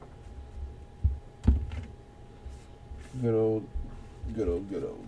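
Cardboard boxes knock and slide against a tabletop nearby.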